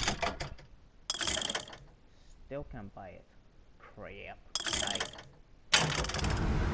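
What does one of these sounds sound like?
Menu selections click and chime.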